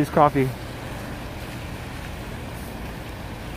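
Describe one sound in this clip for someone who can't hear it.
Car tyres hiss on a wet road as traffic passes.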